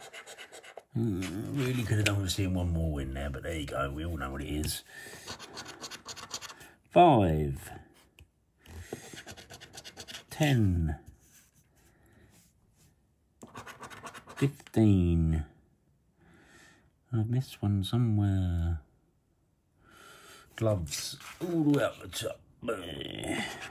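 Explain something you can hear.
A middle-aged man talks casually into a close microphone.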